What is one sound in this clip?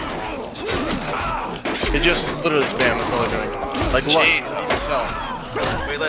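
Swords and shields clash in a fierce melee.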